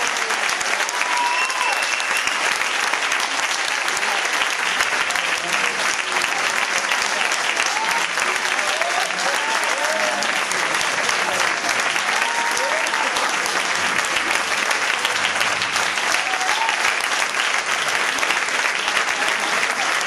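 An audience applauds steadily in a large hall.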